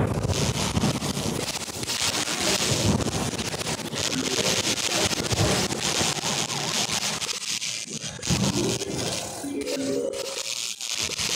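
Game sound effects pop and zap rapidly throughout.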